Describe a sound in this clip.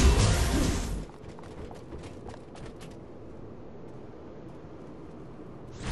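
Blades clash and strike in quick bursts.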